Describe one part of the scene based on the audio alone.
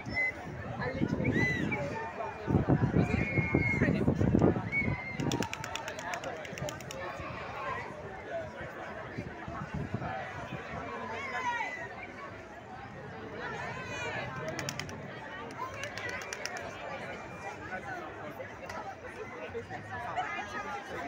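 A large crowd of men and women chatters and calls out all around, outdoors.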